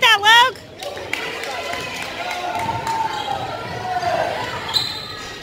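Sneakers squeak sharply on a hard court in an echoing gym.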